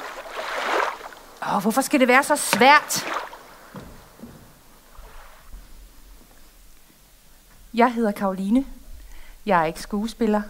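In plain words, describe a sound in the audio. A woman speaks calmly and expressively close by.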